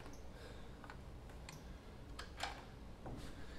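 A screwdriver taps and scrapes against metal.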